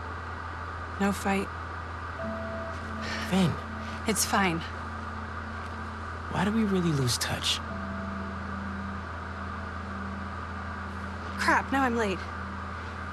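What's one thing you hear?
A young woman speaks softly in reply.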